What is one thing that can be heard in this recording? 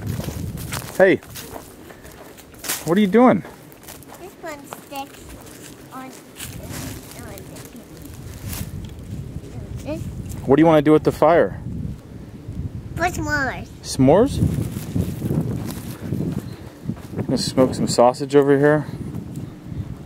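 A young girl talks and calls out nearby.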